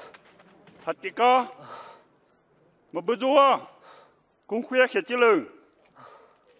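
A man shouts mockingly at close range.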